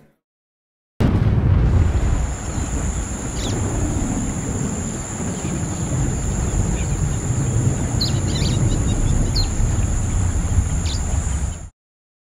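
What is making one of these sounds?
A river flows with a steady rushing sound.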